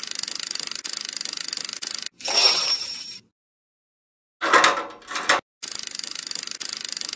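Slot game reels spin with a rapid electronic ticking.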